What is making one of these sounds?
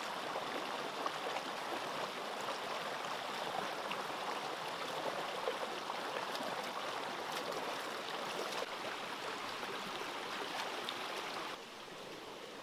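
A shallow stream rushes loudly over rocks close by.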